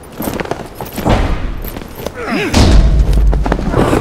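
A heavy wooden crate thuds onto the ground.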